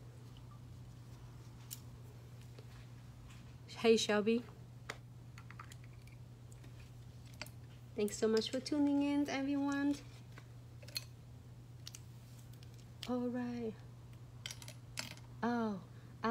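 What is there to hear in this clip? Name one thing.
Plastic nail tip sticks clink softly as they are handled.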